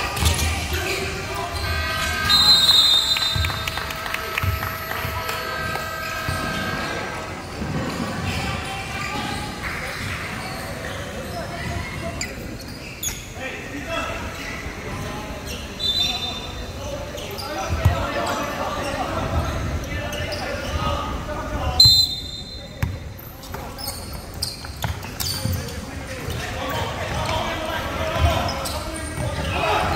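Players and spectators chatter in a large echoing hall.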